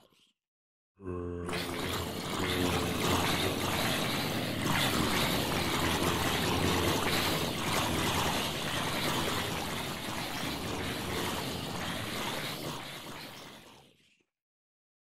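A swarm of fiery game creatures crackles and roars loudly and steadily.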